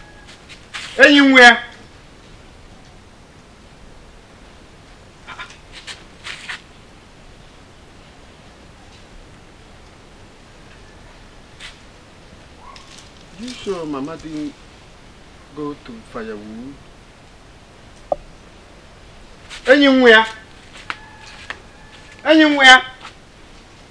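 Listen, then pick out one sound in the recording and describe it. A young man shouts out short, loud calls close by.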